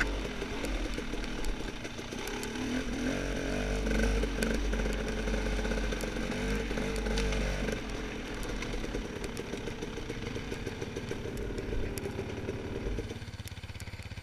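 A dirt bike engine revs and putters close by.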